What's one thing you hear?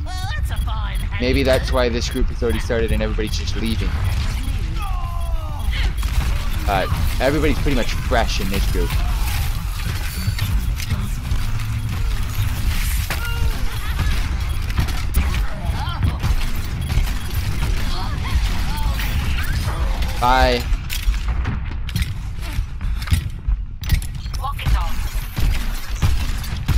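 A grenade launcher fires again and again with heavy booms.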